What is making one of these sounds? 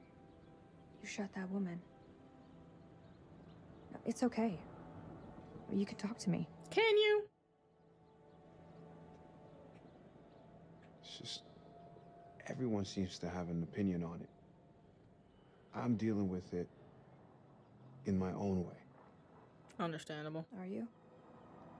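A young woman speaks softly in reply.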